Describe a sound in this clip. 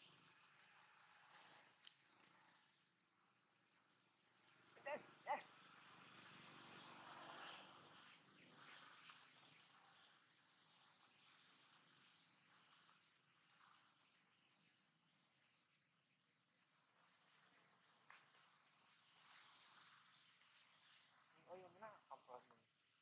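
Dry leaves rustle as a small monkey scampers across the ground.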